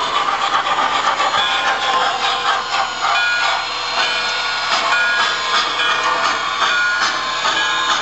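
A model steam locomotive clatters along the rails and slows to a stop.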